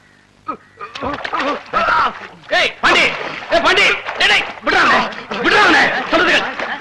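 Men shout and yell excitedly nearby.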